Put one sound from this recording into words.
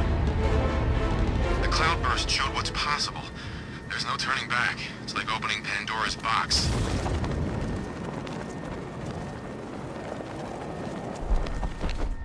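Wind rushes loudly past during a fast glide.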